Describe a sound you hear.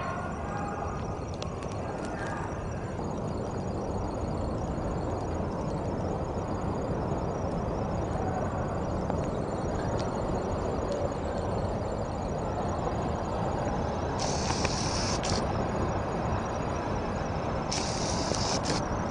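A great surge of seawater rushes and roars over the land.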